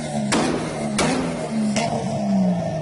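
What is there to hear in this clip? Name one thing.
A car exhaust pops sharply a few times.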